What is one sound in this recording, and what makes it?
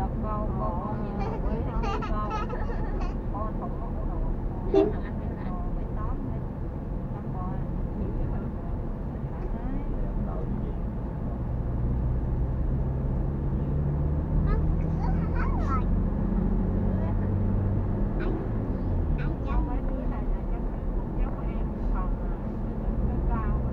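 A car engine hums steadily and rises in pitch as the car speeds up.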